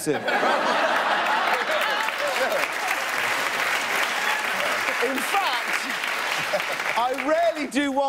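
A studio audience laughs loudly.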